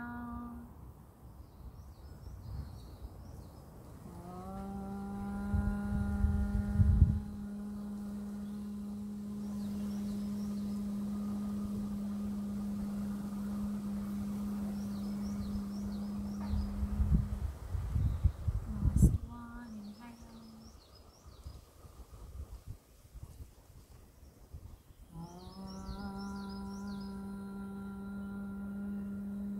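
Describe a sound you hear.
A woman chants a long, steady hum close by.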